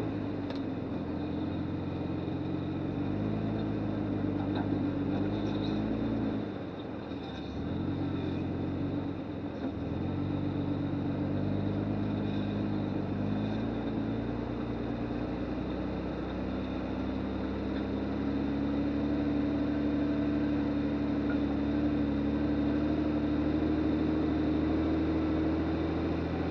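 Tyres crunch over dry leaves and rocks.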